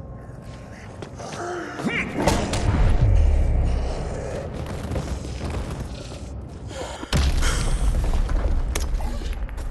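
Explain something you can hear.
Zombies groan and snarl.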